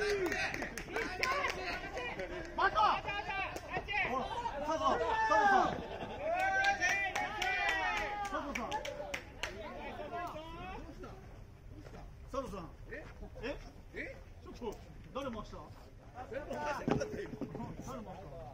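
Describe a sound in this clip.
Several men call out and chatter loudly outdoors.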